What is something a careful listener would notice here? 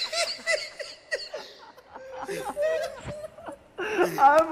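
A young man sobs and wails close to a microphone.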